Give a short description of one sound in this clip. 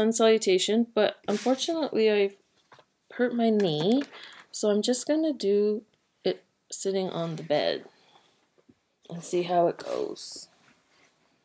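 A woman talks calmly and close to a microphone.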